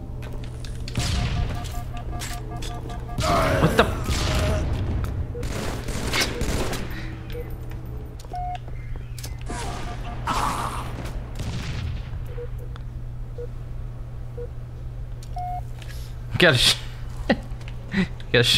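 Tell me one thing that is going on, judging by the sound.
A rifle fires with loud, sharp cracks.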